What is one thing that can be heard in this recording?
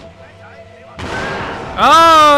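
An explosion booms and roars.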